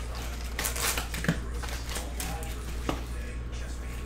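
Paper packs rustle and tap on a table.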